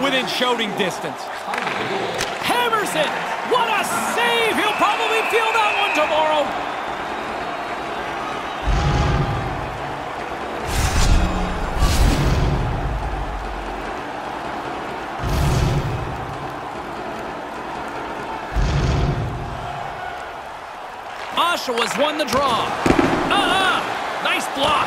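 An arena crowd murmurs and cheers in a large echoing hall.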